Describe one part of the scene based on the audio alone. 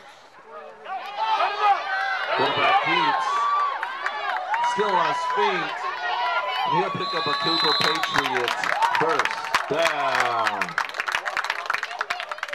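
Young women cheerleaders chant and shout loudly in unison.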